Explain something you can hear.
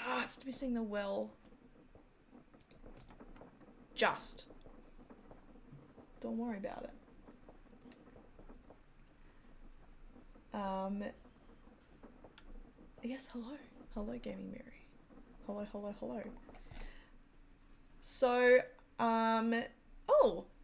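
A woman talks with animation close to a microphone, in short bursts.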